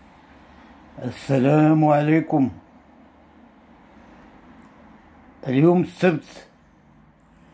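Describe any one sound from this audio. An elderly man speaks slowly and calmly, close by, as if over an online call.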